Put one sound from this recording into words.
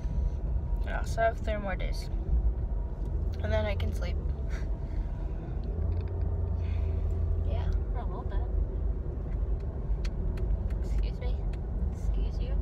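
A car engine hums low and steady inside the cabin.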